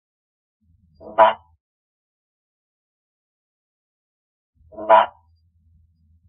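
A frog gives single loud chucks.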